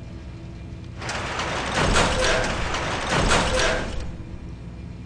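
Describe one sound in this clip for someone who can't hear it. A heavy metal door grinds and rumbles as it slides open.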